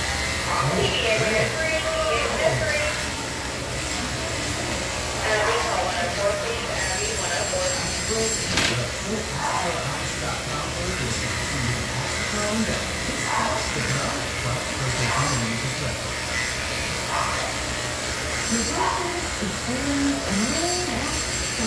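A brush scratches softly through a dog's fur.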